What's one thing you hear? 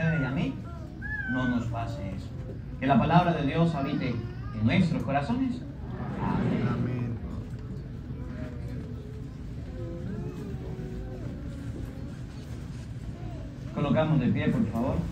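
A crowd of adults chats close by in a large room.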